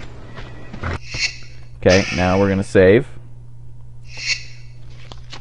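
Menu items whoosh as they spin into place.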